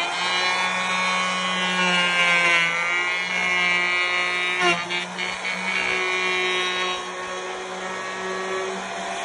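A wood router whines loudly and steadily as it cuts into wood.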